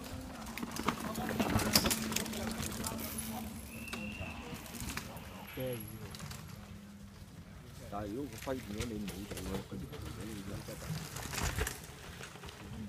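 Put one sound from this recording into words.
A mountain bike rattles and clatters over roots and rocks.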